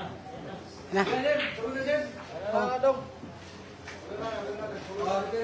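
Pool balls knock together and roll across the table.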